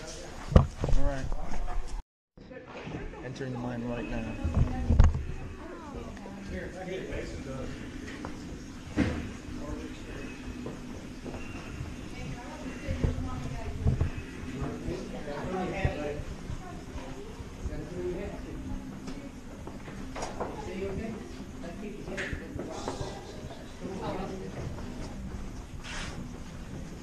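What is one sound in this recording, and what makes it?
Several people talk at a distance in an echoing tunnel.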